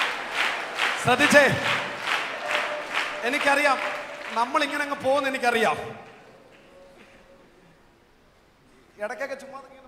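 A man speaks loudly and with animation through a microphone and loudspeakers.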